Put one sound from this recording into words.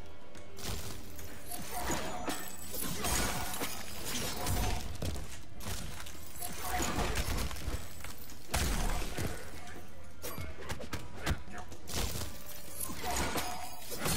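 Icy blasts whoosh and crackle.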